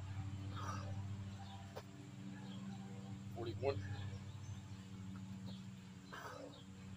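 A man breathes out hard with effort, close by.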